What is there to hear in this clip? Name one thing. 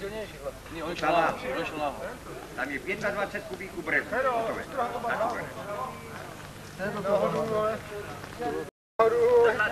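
Men talk close by.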